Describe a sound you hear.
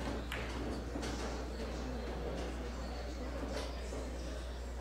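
Billiard balls clack together and roll across the table.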